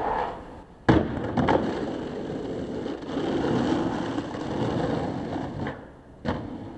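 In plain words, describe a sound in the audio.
Skateboard wheels roll over rough pavement.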